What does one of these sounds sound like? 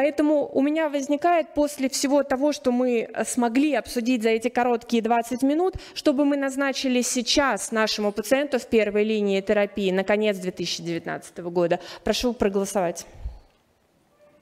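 A woman speaks steadily into a microphone, heard through loudspeakers.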